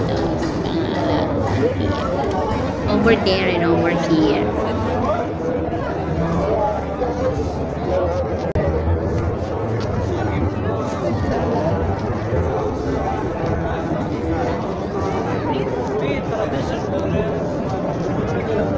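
A crowd of people chatters throughout in a busy, noisy hall.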